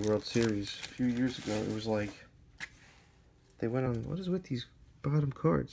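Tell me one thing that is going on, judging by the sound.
Trading cards slide against each other.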